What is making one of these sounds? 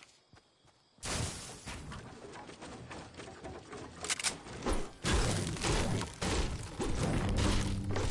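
Wooden building pieces thud and clatter into place.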